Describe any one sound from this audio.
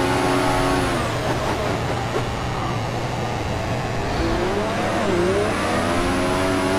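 A racing engine drops to a low rumble as the car brakes, then revs up again.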